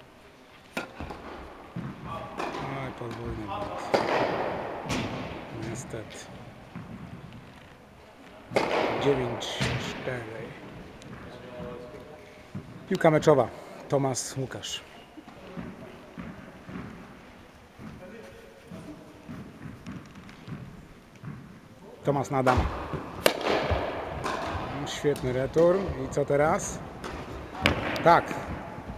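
Rackets strike a tennis ball with sharp pops.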